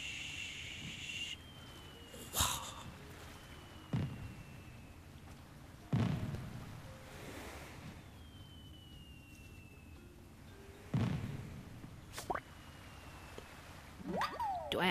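Gentle waves wash onto a shore.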